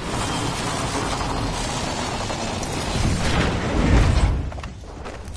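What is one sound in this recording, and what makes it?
Wind rushes loudly past a falling figure, then cuts off with a thud.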